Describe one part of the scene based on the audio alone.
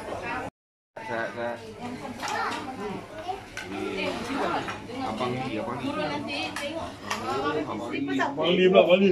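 Several women and children chatter nearby.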